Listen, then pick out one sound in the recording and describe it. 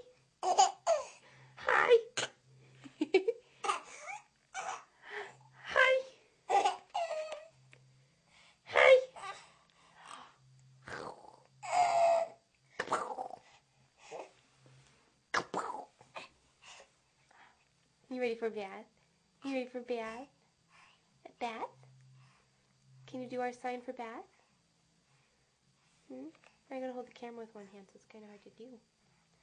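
A baby babbles and squeals close by.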